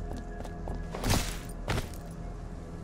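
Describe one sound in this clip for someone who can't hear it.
Gunshots ring out.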